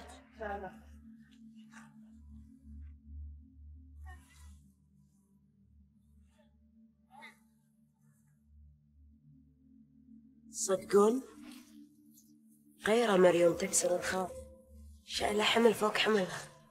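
Young women talk with animation nearby.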